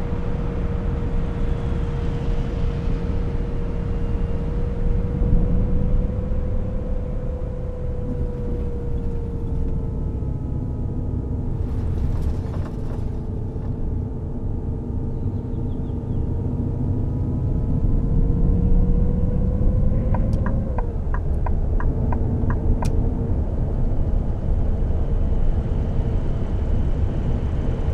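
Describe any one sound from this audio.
Tyres rumble over the road.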